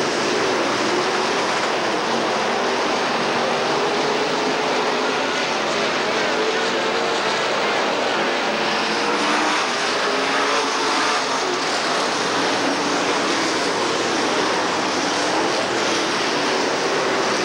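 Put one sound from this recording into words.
Race car engines roar loudly as the cars race past.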